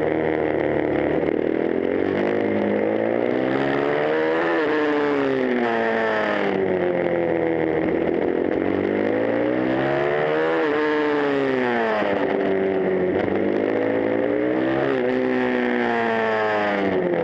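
A motorcycle engine roars close by, revving up and down through the gears.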